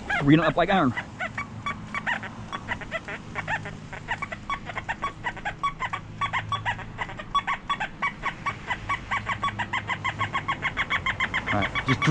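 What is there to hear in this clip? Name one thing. A metal detector gives off rapid, repeated electronic chirps and beeps.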